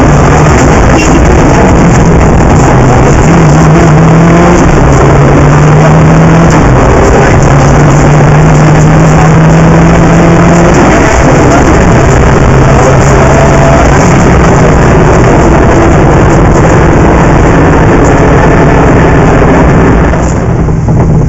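A car engine roars loudly and revs up and down as the car speeds along.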